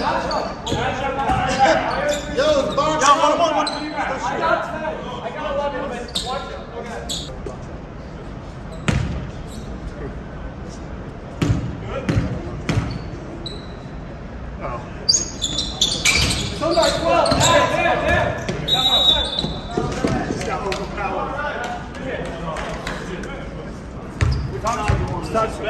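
Young men talk and call out across an echoing gym.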